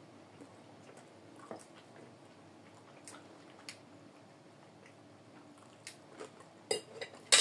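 A fork clinks and scrapes against a plate.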